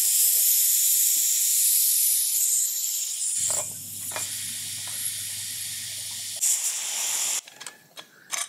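A pressure cooker hisses loudly as steam escapes.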